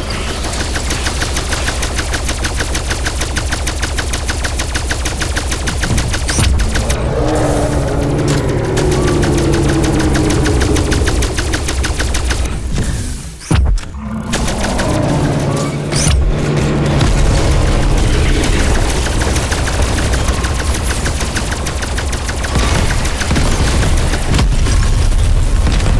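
An automatic gun fires in long rapid bursts.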